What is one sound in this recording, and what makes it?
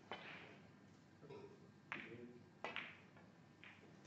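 Snooker balls click against each other.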